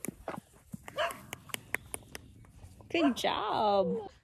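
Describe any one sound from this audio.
A horse snorts and breathes heavily close by.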